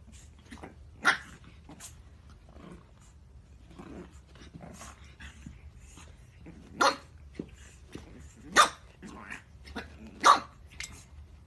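A pug puppy yips and barks in short sharp bursts.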